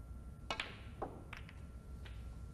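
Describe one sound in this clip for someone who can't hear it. Snooker balls click sharply together.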